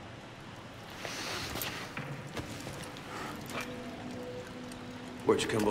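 A young man groans and speaks quietly, close by.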